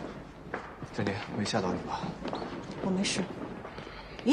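A young woman asks a question in a concerned voice.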